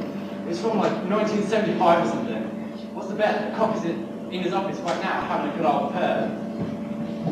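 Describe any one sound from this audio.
Young men speak on a stage, heard from across an echoing hall.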